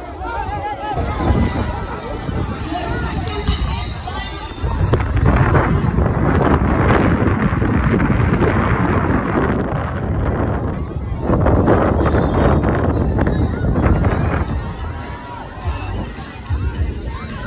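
A crowd chatters and cheers in an open outdoor arena.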